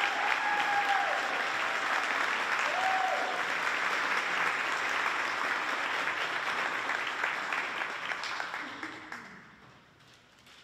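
An audience applauds in a large echoing hall, then the clapping dies away.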